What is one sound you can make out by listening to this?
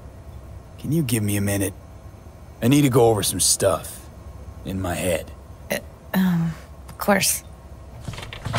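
A young woman speaks calmly and quietly, close by.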